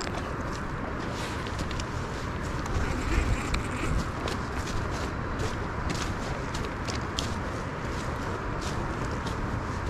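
Footsteps crunch on dry grass and twigs.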